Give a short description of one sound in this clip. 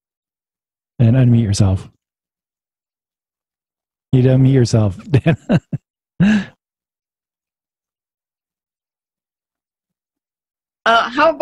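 A man speaks calmly into a microphone over an online call, in short bursts with pauses.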